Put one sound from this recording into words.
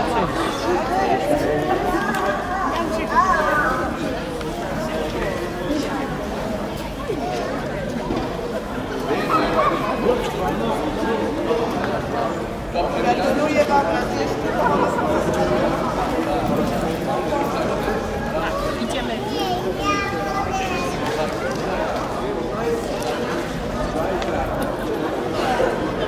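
A crowd of people chatter throughout.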